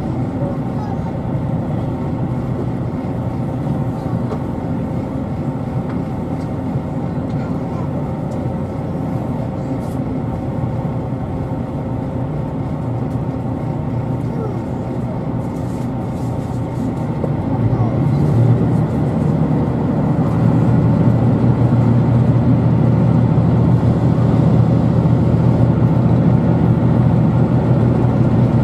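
A train hums and rumbles steadily as it rolls along, heard from inside a carriage, growing louder partway through.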